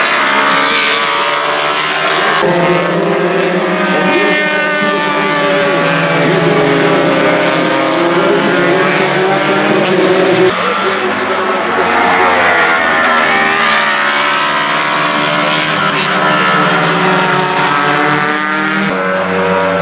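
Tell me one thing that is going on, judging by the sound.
Racing car engines scream loudly as they pass at high speed, their pitch rising and falling.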